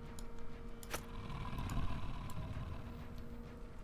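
A magic blast rumbles and crumbles in a game.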